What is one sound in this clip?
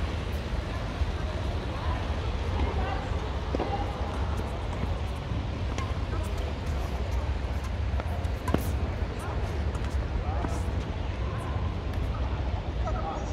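Footsteps squeak and shuffle on a hard court.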